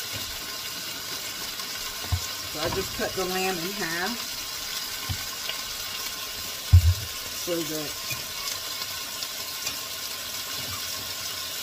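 Meat sizzles in a frying pan.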